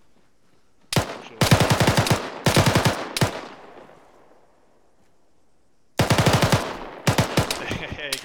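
Rifle shots crack loudly in quick bursts.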